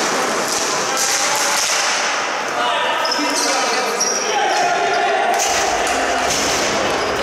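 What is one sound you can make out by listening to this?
Sticks clack and tap on a hard floor in a large echoing hall.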